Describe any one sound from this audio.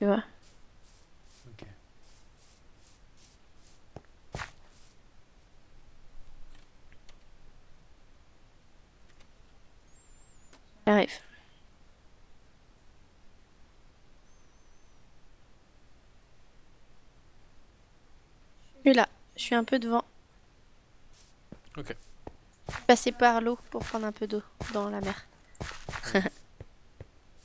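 Footsteps tread softly over grass and stone.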